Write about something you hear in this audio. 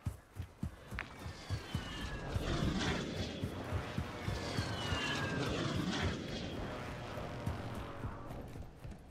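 Footsteps crunch quickly over sand and gravel.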